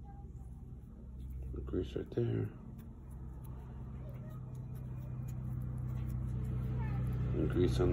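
A small metal part clicks and taps as fingers handle it.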